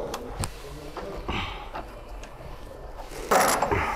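A ratchet wrench clicks rapidly.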